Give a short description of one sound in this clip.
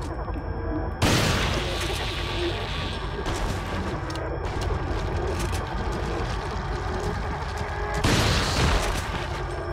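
A pump-action shotgun fires.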